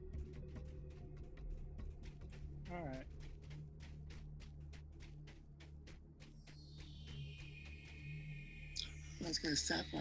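Footsteps tap quickly and evenly on stone.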